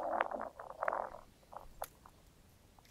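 Dry branches rustle and snap close by.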